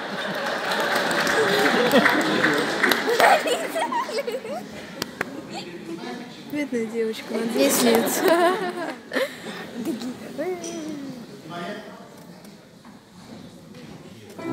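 A children's choir sings in a large hall.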